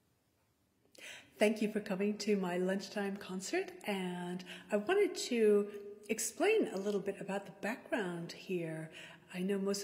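A young woman speaks to the listener with animation, close to a microphone.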